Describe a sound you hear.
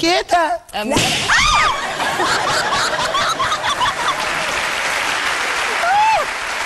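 Several women laugh and chatter together in the background.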